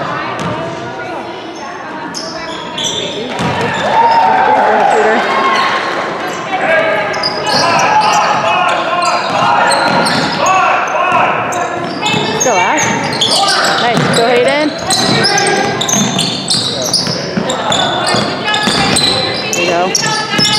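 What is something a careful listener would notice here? Teenage boys shout and call out to each other in an echoing gym.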